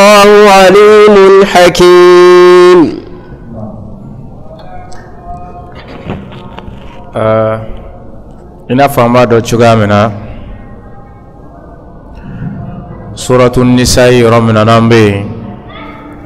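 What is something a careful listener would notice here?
A man chants loudly in a drawn-out, melodic voice through a microphone.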